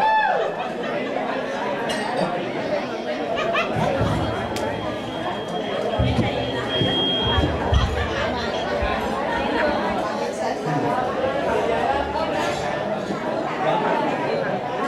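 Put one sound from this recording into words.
A man talks with animation into a microphone, heard over loudspeakers in a large echoing hall.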